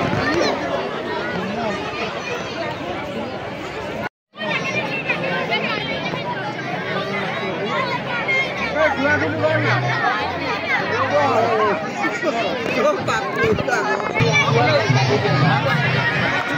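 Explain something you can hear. A large crowd chatters and calls out outdoors.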